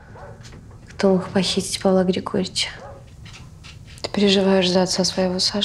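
A woman speaks loudly and with emotion nearby.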